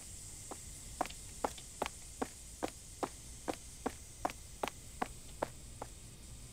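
Footsteps tread steadily on the ground.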